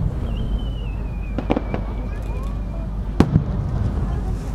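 Fireworks crackle and bang in the distance outdoors.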